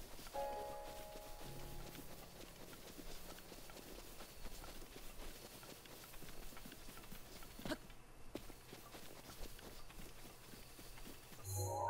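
Wind blows steadily through grass.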